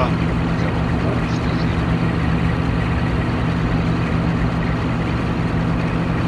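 An electric locomotive engine hums steadily from inside the cab.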